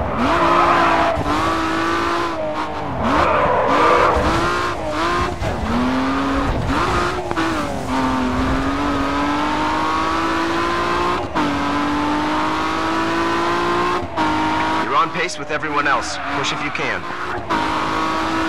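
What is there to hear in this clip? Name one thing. A car engine roars at high revs, rising and dropping as the driver shifts gears.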